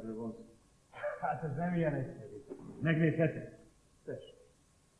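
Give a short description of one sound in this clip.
Another man answers in a conversation.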